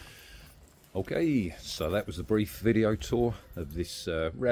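A middle-aged man speaks calmly and close to the microphone.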